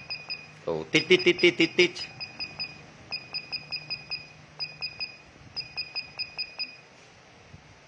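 An electronic device beeps in quick short bursts as its buttons are pressed.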